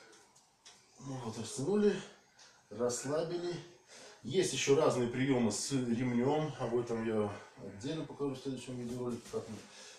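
A man speaks calmly and explains nearby.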